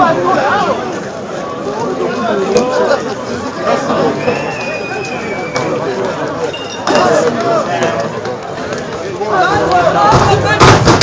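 A large fire crackles and roars.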